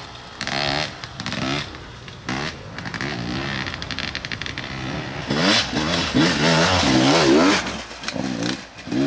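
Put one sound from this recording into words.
A dirt bike engine revs up and down and comes closer.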